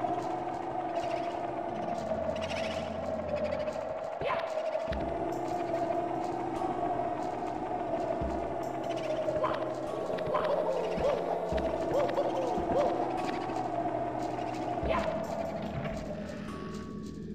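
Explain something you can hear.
Quick footsteps patter as a game character runs.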